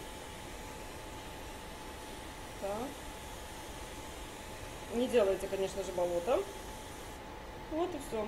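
A spray bottle hisses as it sprays water.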